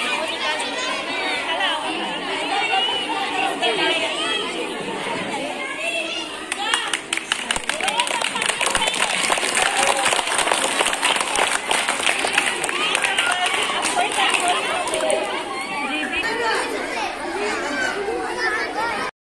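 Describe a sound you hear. A crowd of women and children chatter loudly all around.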